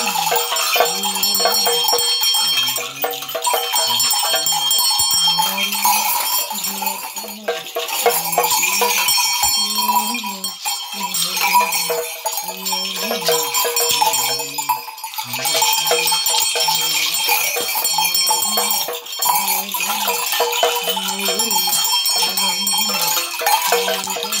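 Rattles shake in a quick, steady rhythm.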